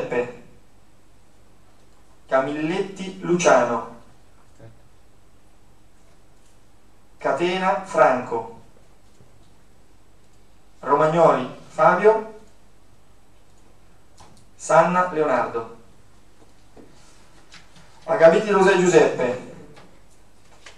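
A man speaks in short phrases through a microphone, with pauses between them.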